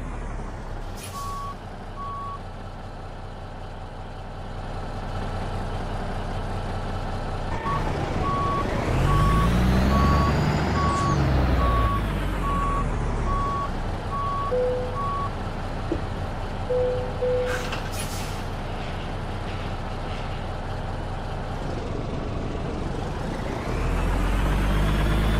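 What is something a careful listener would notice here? A diesel semi truck engine rumbles and idles.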